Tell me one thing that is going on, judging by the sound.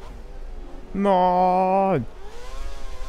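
A racing car engine briefly screams loudly at high revs, then drops sharply.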